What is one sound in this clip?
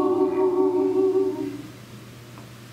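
A group of women and a man sing together through microphones.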